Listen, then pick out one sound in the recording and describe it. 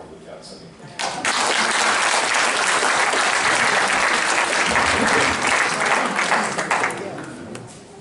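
Hands clap loudly in applause.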